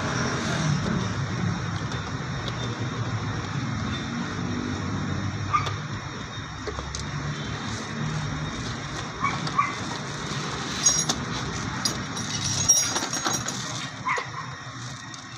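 Plastic parts and wires rattle and click as hands work on them.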